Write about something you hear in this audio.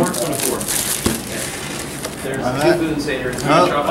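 Paper rustles as it is pulled out of a box.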